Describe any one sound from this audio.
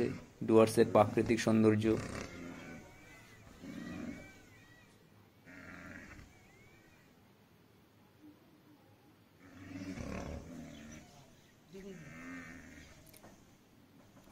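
Rhinos snort.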